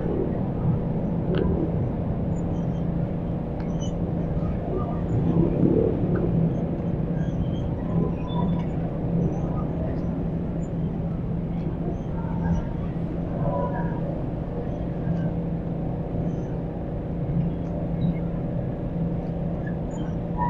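A man eats, chewing noisily close by.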